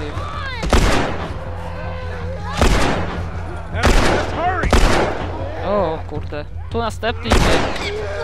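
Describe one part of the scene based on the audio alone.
Pistol shots ring out one at a time, echoing loudly.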